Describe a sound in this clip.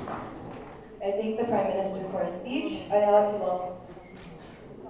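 A woman speaks through a microphone over loudspeakers in a large hall.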